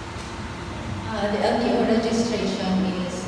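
A young woman speaks into a microphone.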